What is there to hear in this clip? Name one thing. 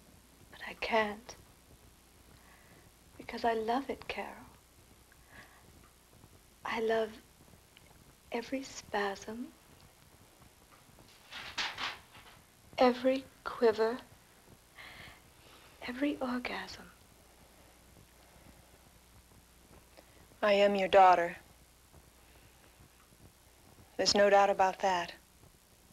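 A woman speaks quietly and earnestly, close by, in short phrases with pauses.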